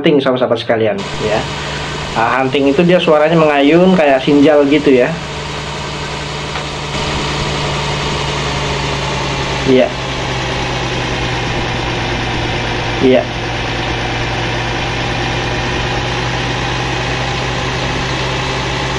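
A large diesel engine idles with a steady low rumble.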